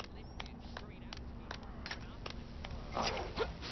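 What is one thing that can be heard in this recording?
Small plastic footsteps tap quickly.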